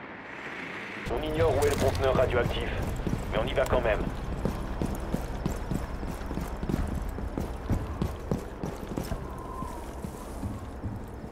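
Footsteps crunch over rubble and gravel.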